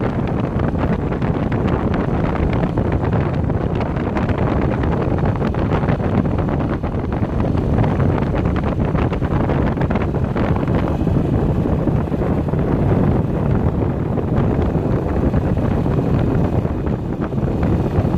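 Wind blows loudly, rumbling across the microphone.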